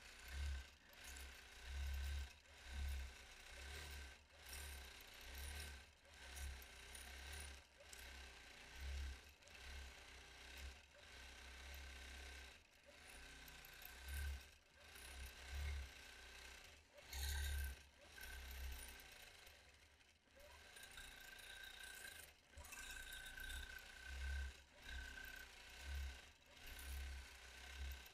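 A sewing machine hums and stitches steadily, with short pauses.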